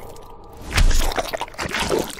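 A heavy punch lands with a wet, crunching thud.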